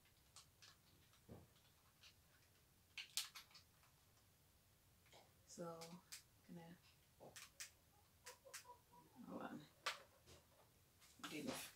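Small plastic parts click and rattle in a woman's hands.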